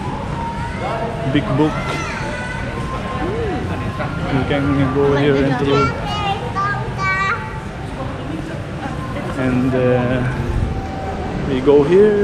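A young man talks casually, close up.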